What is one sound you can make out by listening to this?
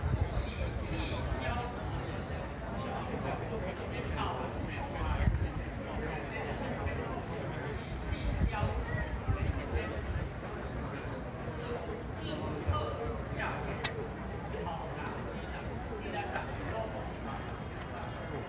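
A crowd of onlookers chatters outdoors.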